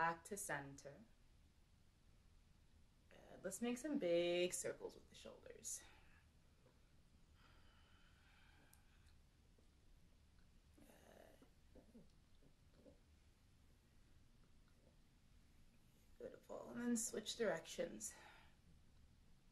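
A young woman speaks calmly and softly, close by, with long pauses.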